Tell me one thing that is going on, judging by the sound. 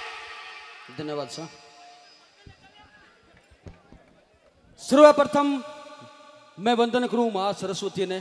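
A second man sings through a microphone in short, rising phrases.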